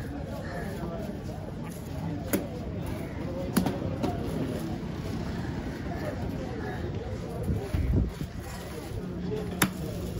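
A knife slices wetly through fish flesh.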